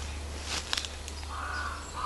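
A hand rustles through soft moss.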